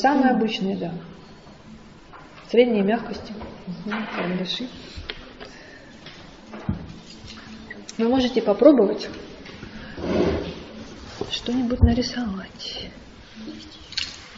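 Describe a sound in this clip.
A woman speaks calmly and clearly nearby.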